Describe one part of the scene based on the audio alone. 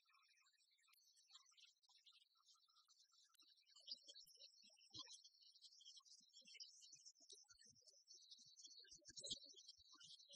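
Rackets strike a shuttlecock back and forth.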